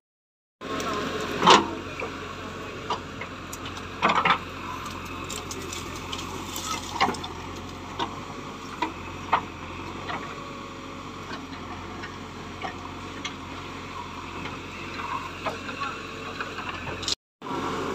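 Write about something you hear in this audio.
A diesel engine rumbles steadily.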